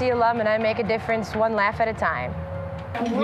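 A woman speaks into a microphone close by.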